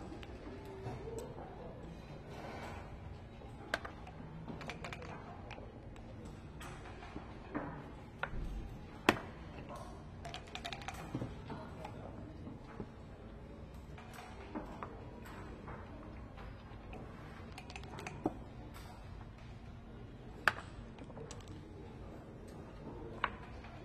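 Wooden checkers click as they are moved on a board.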